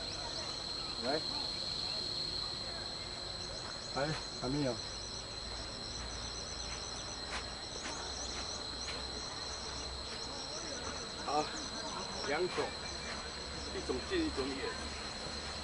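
An elderly woman speaks briefly nearby.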